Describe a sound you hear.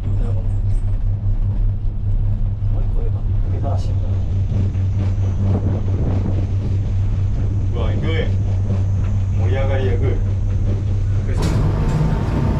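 A gondola cabin hums and rumbles steadily as it glides along a cable.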